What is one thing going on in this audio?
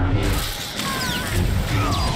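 Blaster bolts fire in quick bursts.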